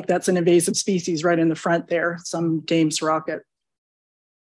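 A person speaks into a microphone in a calm, presenting tone.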